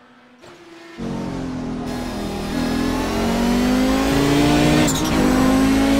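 A race car engine roars loudly from inside the cockpit, revving high.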